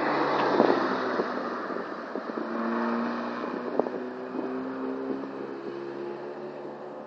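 A car engine fades into the distance as it drives away round a bend.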